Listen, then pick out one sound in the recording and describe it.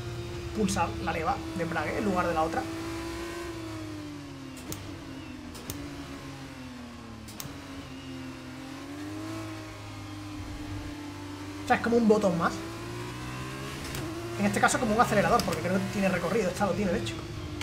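A racing car engine hums steadily, its pitch rising and falling with the gears.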